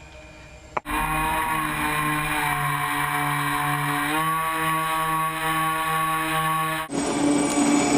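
A small propeller motor whines steadily, dipping briefly in pitch and then rising again.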